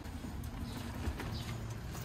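A small cart rattles as its wheels roll over pavement.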